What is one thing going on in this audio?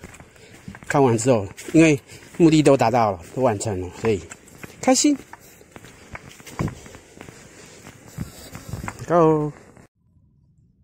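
Footsteps crunch softly on a dirt trail.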